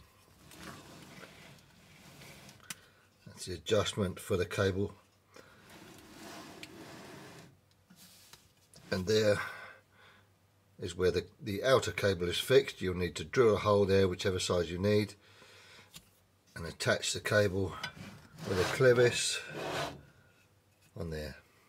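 Metal parts click and rattle as hands adjust a pedal assembly.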